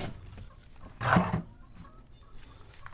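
A plastic bucket clunks as it is set down close by.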